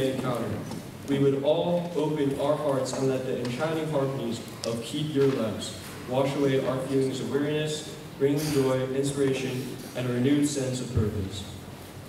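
A young man sings alone into a microphone in an echoing hall.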